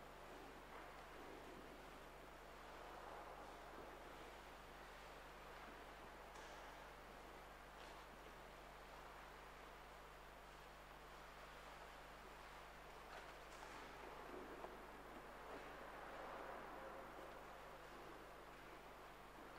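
A man speaks slowly through a microphone in a large echoing hall.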